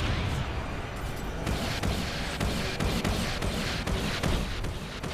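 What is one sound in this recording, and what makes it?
Gunfire and explosions boom in rapid bursts.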